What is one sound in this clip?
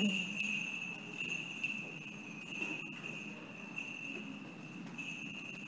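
A man chants softly in a quiet echoing room, heard through a distant microphone.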